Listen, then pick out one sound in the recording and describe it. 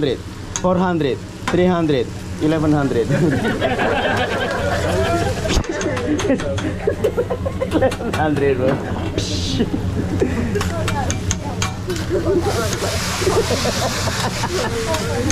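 Food sizzles on a griddle.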